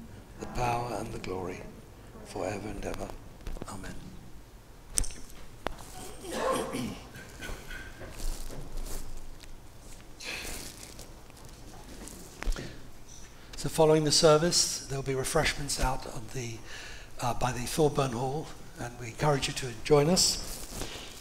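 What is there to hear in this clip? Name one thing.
An elderly man speaks calmly through a microphone in a large echoing room.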